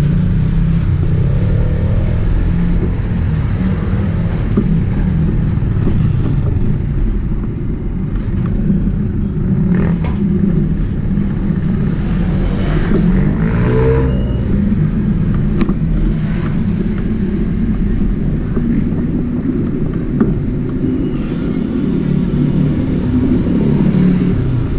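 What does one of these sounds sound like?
A motorbike engine hums steadily while riding along a street.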